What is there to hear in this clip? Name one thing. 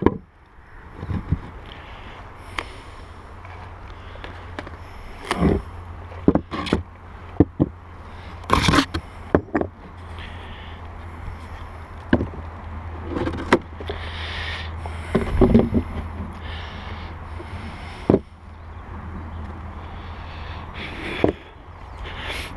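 Wooden beehive boxes knock and bump as they are handled.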